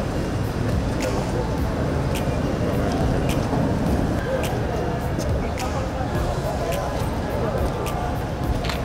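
A large outdoor crowd cheers and chants loudly.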